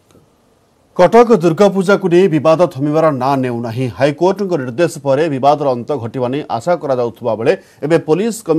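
A man reads out the news steadily into a microphone.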